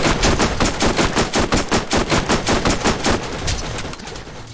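A rapid-fire gun shoots in fast bursts.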